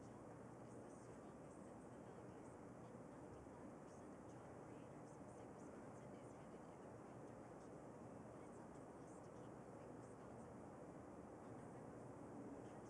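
A brush dabs and scrapes softly on canvas.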